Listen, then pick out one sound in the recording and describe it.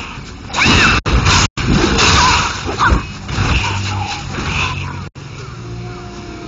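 Heavy sword blows clash and whoosh in a fight.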